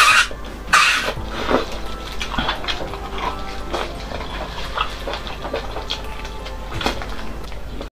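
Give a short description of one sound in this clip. Wet food squelches and tears.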